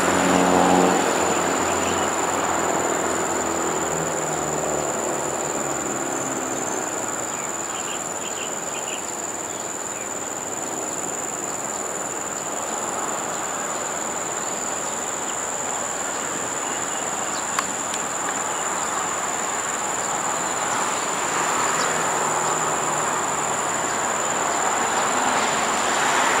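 A diesel locomotive engine rumbles and hums as a train rolls slowly over the tracks.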